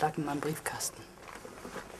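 A woman speaks quietly, close by.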